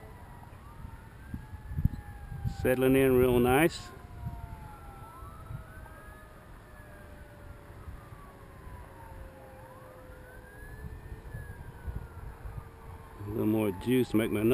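An electric radio-controlled model plane whines overhead, its propeller pitch rising and falling as it flies.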